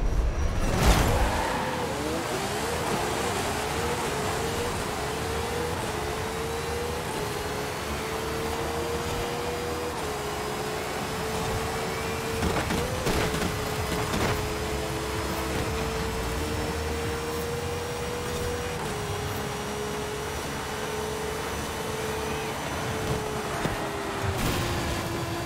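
A race car engine roars at high speed, climbing in pitch through quick gear changes.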